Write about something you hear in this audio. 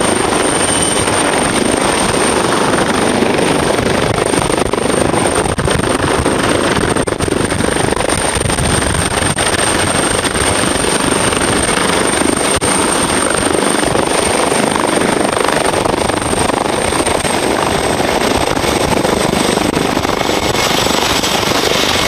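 A helicopter's turbine whines at a high, steady pitch that drops a little near the end.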